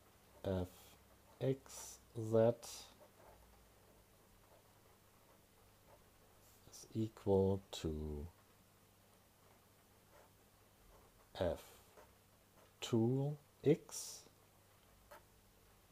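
A pen scratches on paper as it writes.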